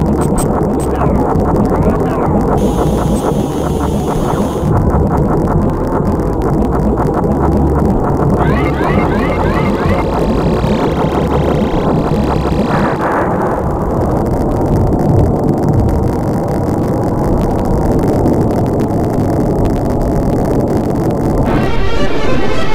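Explosions boom in a video game.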